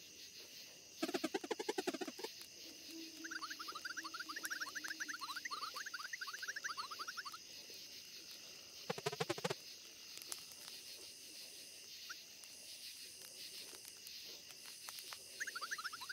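Short high chirping blips patter quickly as dialogue text types out.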